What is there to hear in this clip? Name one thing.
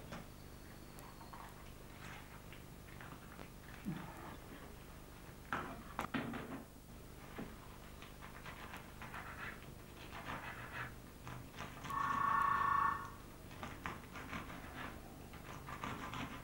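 A knife cuts on a chopping board with soft taps.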